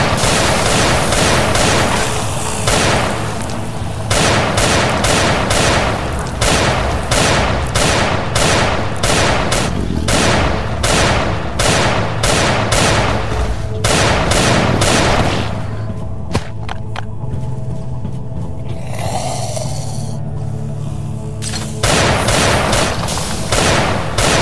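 Rapid gunshots fire in quick bursts.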